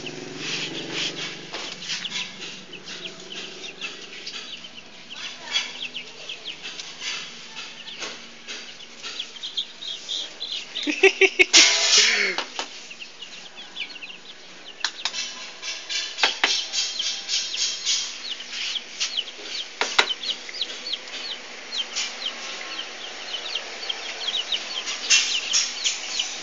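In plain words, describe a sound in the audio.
Chicks peep with high, rapid chirps throughout.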